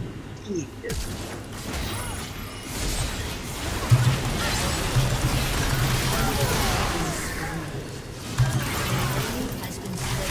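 Video game battle effects crackle and whoosh.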